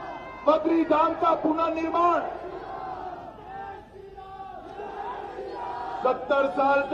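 A middle-aged man speaks forcefully into a microphone, his voice ringing through loudspeakers outdoors.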